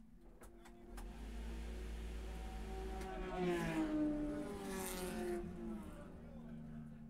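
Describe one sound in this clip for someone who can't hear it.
An air wrench whirs loudly on a wheel, rising and falling in pitch.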